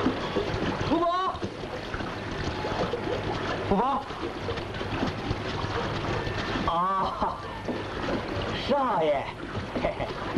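A middle-aged man calls out loudly.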